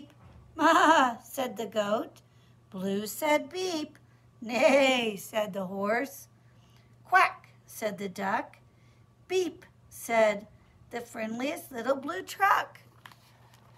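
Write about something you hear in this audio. A woman reads aloud with animation, close by.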